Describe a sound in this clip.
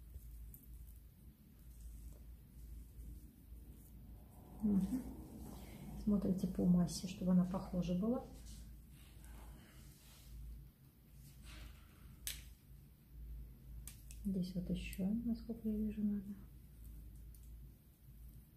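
Scissors snip through hair close by.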